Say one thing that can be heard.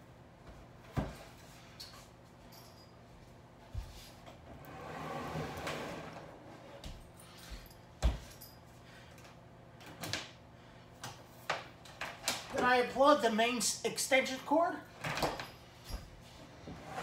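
Objects knock and thump on a wooden stand.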